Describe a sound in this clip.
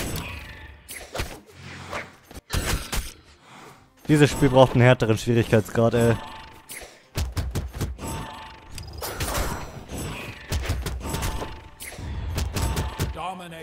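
Cartoon fighters clash with quick hits and whooshes.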